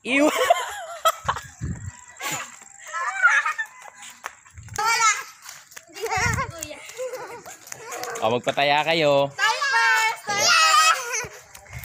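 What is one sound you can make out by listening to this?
A teenage girl talks with animation nearby.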